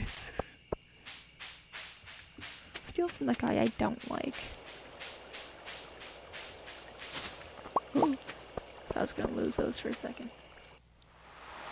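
Footsteps tap quickly and evenly on a path.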